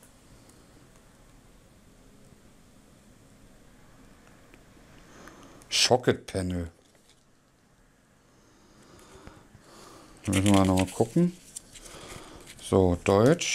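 Playing cards rustle and slide in a man's hands.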